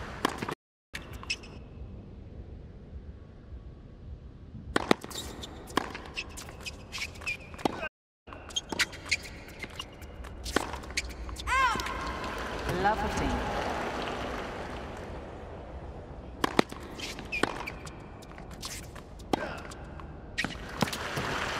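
Tennis balls are struck with sharp pops.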